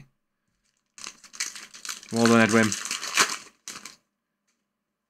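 Plastic card wrappers crinkle in hands.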